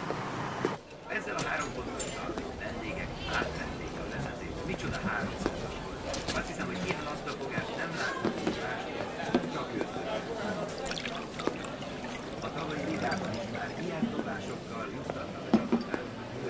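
A crowd of men and women chatters in the background.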